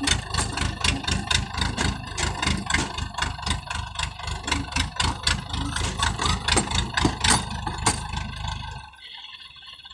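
A harvester engine chugs loudly with a fast, rhythmic clatter, then suddenly stops.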